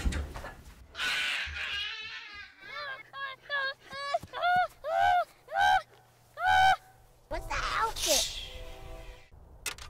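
A young boy speaks in a high voice, close by.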